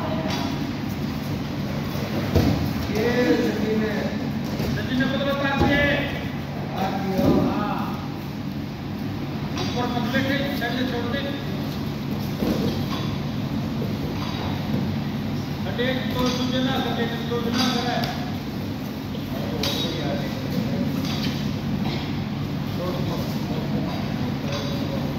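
Wrestlers' bodies thud and scuffle on a padded mat.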